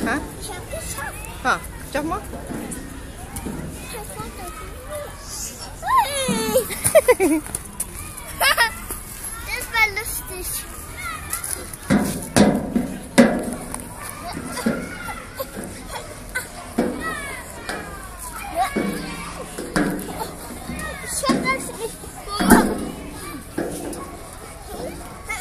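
A young child squeals and babbles close by.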